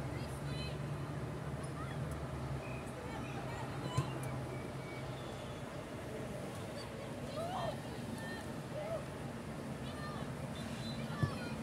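Wind blows across an open outdoor field.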